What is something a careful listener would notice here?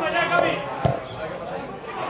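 A football thuds off a boot far away.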